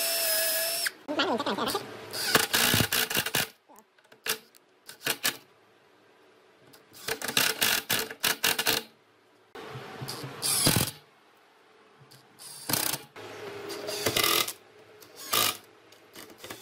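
An impact driver hammers, driving screws into wood.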